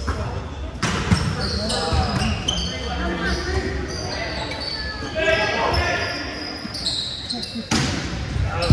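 A volleyball is struck with a hard smack.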